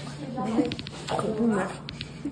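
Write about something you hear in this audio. A second young woman speaks and laughs close by.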